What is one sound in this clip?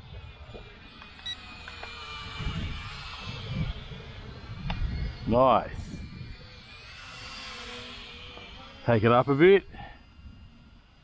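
A small drone buzzes with a high whine as it flies past, rising and falling in pitch.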